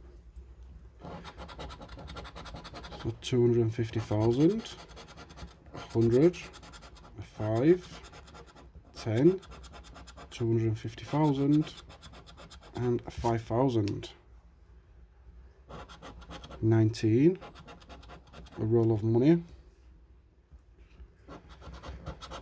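A coin scrapes over a scratch card.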